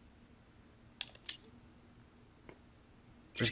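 Game menu selections click and blip.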